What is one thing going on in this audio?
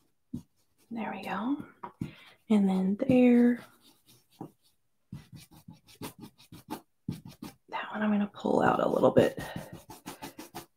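A small tool taps and pats rapidly on paper.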